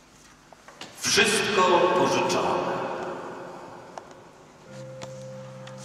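A man reads aloud calmly through a microphone in a large echoing hall.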